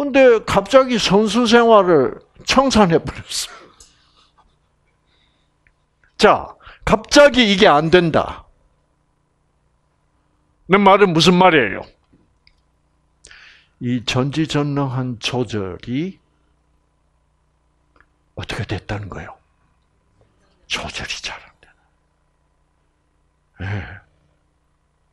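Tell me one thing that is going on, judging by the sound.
An elderly man speaks with animation through a headset microphone, in short bursts with pauses.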